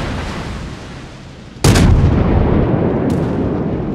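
Shells splash heavily into water nearby.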